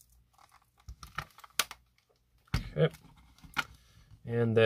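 Batteries clack against plastic as they are handled.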